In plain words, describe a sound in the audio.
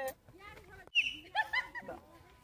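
A young woman blows a short whistle.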